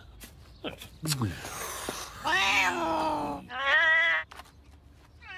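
A cat yowls and hisses loudly.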